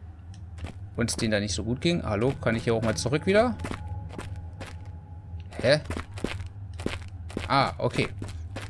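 A man talks close to a microphone with animation.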